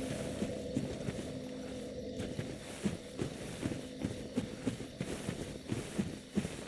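Armoured footsteps thud and clink steadily on the ground.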